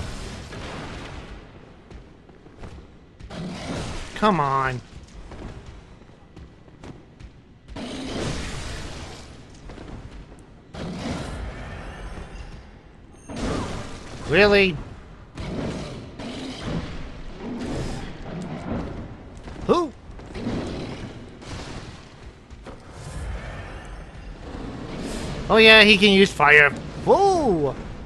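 Blades slash and strike with sharp thuds.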